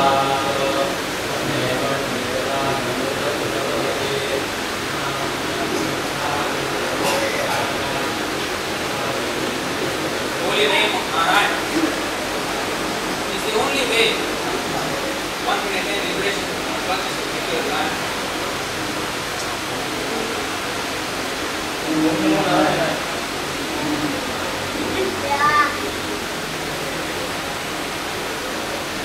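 A man speaks with feeling on stage, heard from among an audience in a hall with some echo.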